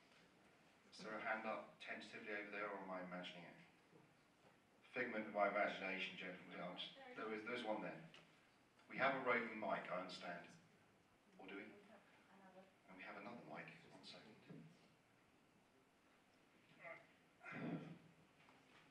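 A man speaks through a microphone in a large room, pausing between phrases.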